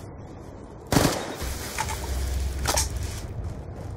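Electricity crackles and zaps sharply.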